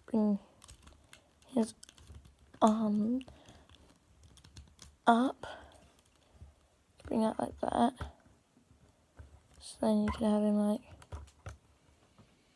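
Plastic toy parts click and rattle as they are handled.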